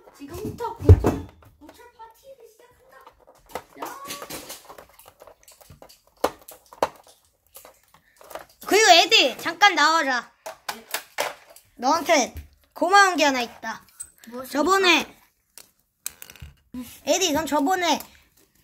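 Plastic toys clatter and knock on a wooden floor.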